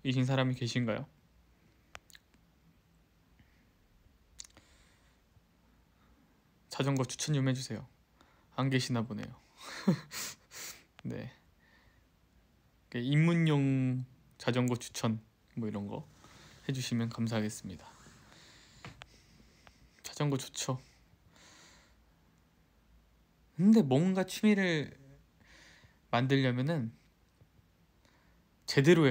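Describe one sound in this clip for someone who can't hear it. A young man talks casually and close to the microphone, in short bursts with pauses.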